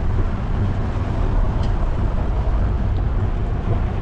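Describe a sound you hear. A car drives past on the street nearby.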